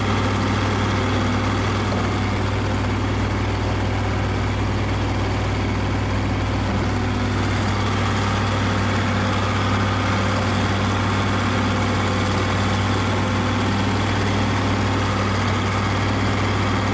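A tractor engine drones steadily up close.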